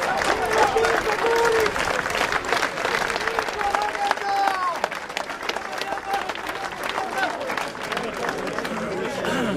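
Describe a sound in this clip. People in a crowd clap and whistle.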